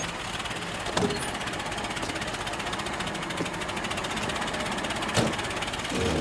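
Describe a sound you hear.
A car door clicks shut.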